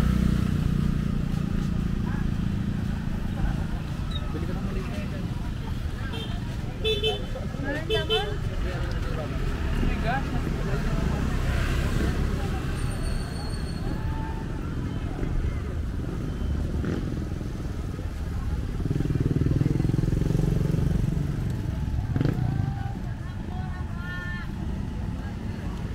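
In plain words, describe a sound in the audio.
Traffic rumbles steadily along a nearby road outdoors.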